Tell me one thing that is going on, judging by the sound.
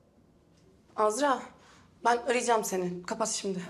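A young woman speaks tensely into a phone.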